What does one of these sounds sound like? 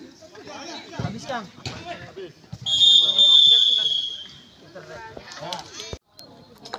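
Men shout and call out outdoors.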